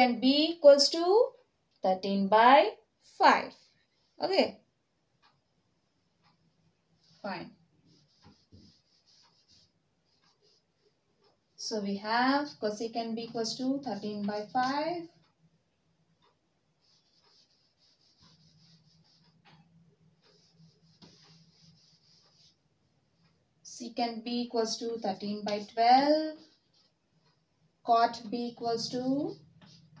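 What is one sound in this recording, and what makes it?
A young woman speaks calmly, explaining.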